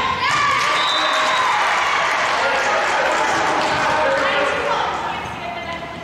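Young women cheer and shout loudly in an echoing gym.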